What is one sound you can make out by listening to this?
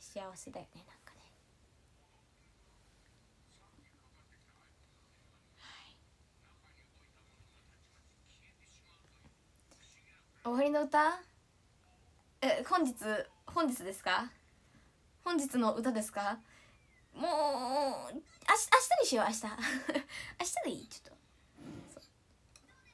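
A young woman speaks calmly and close up, with pauses.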